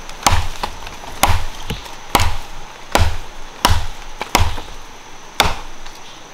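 An axe chops into a tree trunk with sharp, regular blows.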